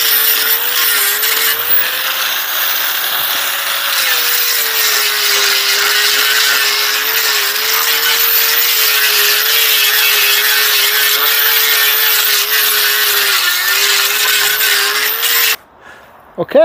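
An angle grinder whines loudly as it sands wood.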